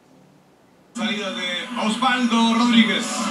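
A stadium crowd roars loudly through a television.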